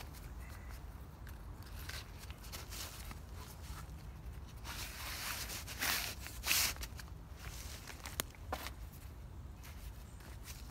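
A tarp rustles and flaps as it is pulled over wooden poles.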